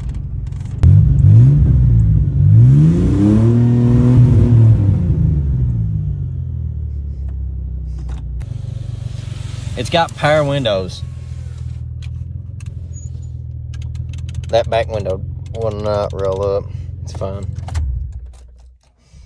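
A car engine revs up and down, then idles roughly.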